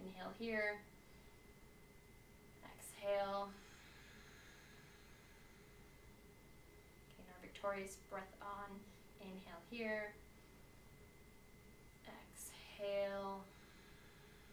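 A woman speaks calmly and slowly close by.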